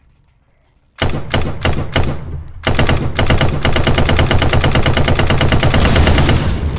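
A gun fires in rapid bursts of loud shots.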